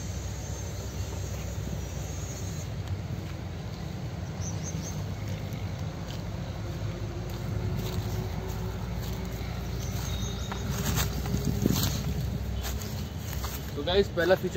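Footsteps rustle through dry grass and leaves.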